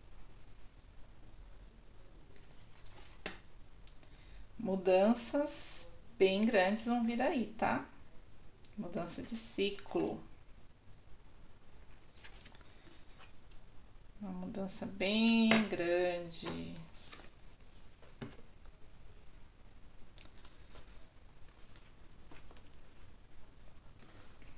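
Playing cards slide and tap softly onto a table.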